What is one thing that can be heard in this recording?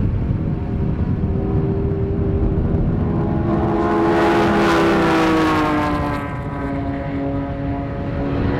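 Racing car engines roar and whine as the cars pass nearby, swelling and then fading.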